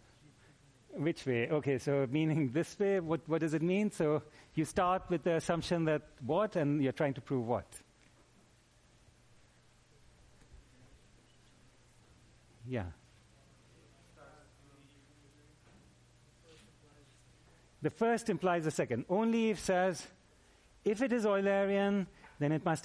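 A middle-aged man lectures with animation through a microphone.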